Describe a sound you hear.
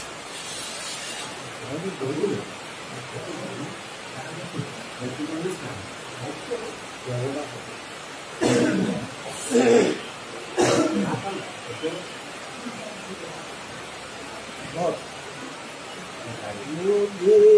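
An elderly man talks calmly nearby.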